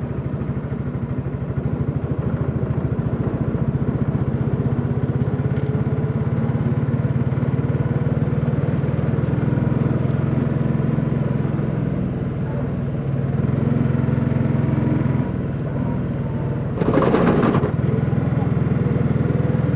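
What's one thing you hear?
A small engine rattles and putters steadily up close.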